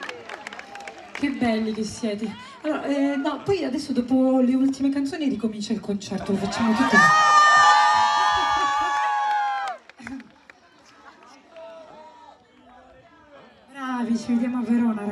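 A young woman sings through loudspeakers at a live concert.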